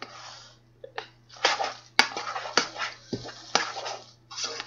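A spoon knocks against the rim of a metal pot.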